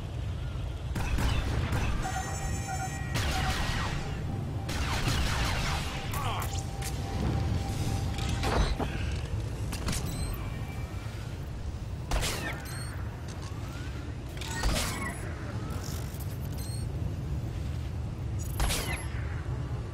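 Energy weapons zap and crackle in quick bursts.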